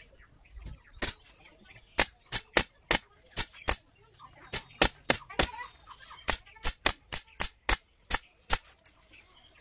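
A pneumatic staple gun fires sharp clicks in quick bursts.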